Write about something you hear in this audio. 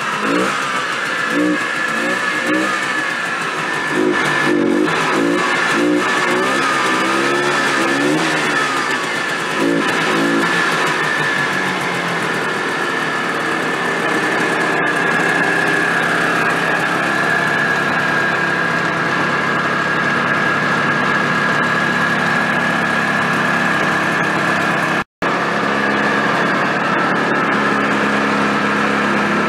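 A small engine idles steadily close by.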